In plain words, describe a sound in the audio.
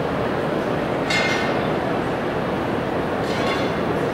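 A spoon taps lightly against a plate.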